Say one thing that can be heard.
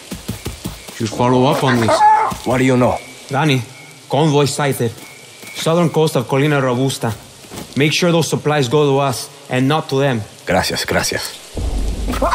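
A man speaks calmly and clearly, close by.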